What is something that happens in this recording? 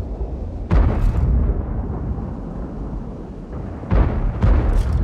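A tank cannon fires with heavy booms.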